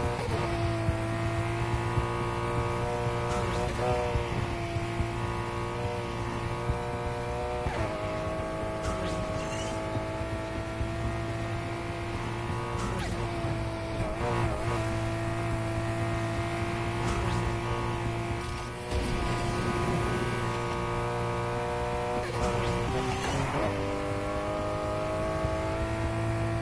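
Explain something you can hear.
A car engine roars at high revs, shifting gears now and then.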